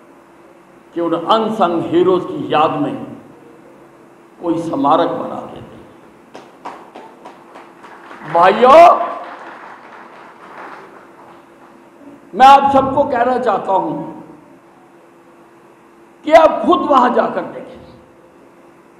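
An elderly man speaks forcefully through a microphone and loudspeakers, in bursts with pauses.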